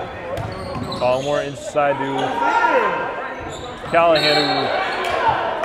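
Sneakers squeak sharply on a hard court in an echoing gym.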